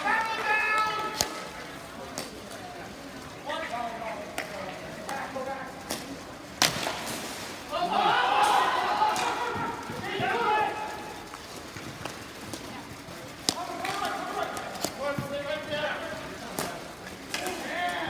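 Young players shout and call out across the rink.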